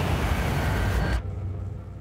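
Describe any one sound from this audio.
Flame jets burst with a loud whoosh.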